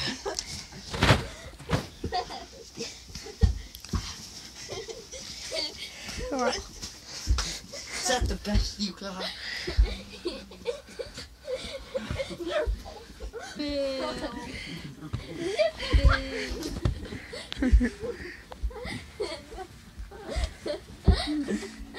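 Boys scuffle and wrestle, with bodies thumping against each other and the floor.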